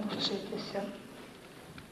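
A woman speaks into a microphone.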